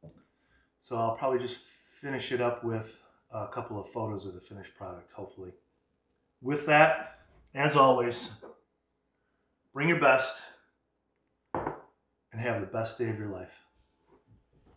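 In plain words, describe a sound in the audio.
A middle-aged man talks calmly and clearly, close by.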